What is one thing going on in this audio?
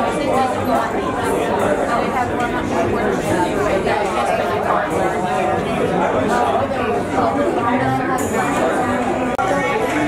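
Elderly women chat nearby.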